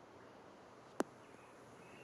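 A golf club taps a ball with a light click.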